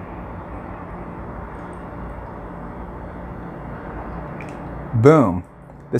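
Liquid pours from a bottle into a small bowl.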